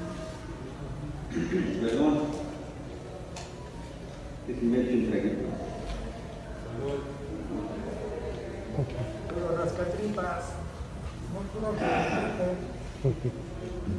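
A middle-aged man speaks steadily through a microphone.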